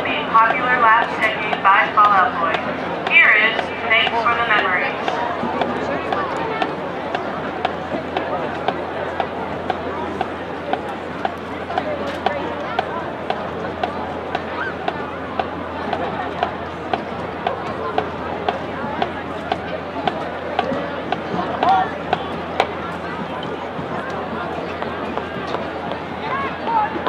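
A drum taps out a steady, regular beat.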